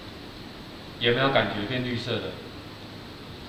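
A middle-aged man speaks briefly and calmly into a microphone.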